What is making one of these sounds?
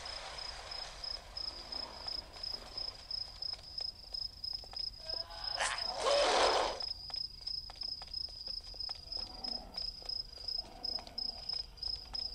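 Footsteps run steadily on hard ground.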